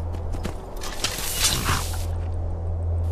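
A sword scrapes as it is drawn from its sheath.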